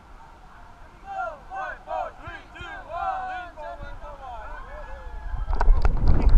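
Men's voices call out loudly close by.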